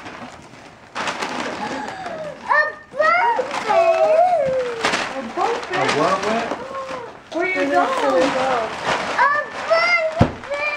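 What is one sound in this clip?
Wrapping paper rips and crinkles as it is torn off.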